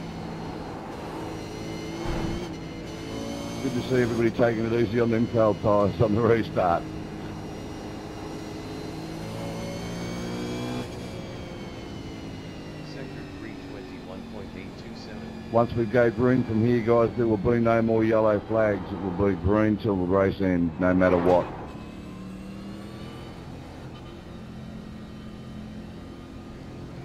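A racing car engine drones steadily, rising and falling in pitch.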